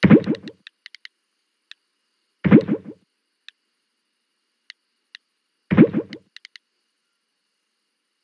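Soft interface clicks tick as items are moved.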